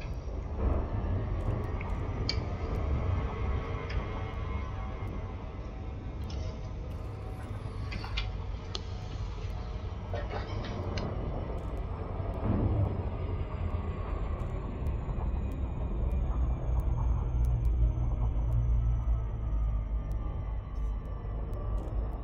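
A spaceship engine hums with a deep, steady rumble.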